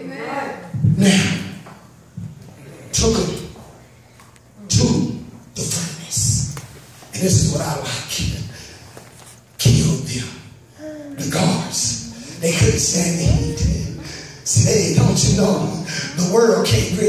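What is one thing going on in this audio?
A man preaches with animation through a microphone in an echoing room.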